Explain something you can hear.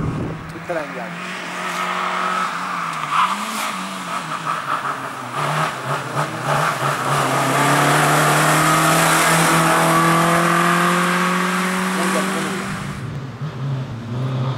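A rally car engine revs hard and shifts gears, growing louder and then fading.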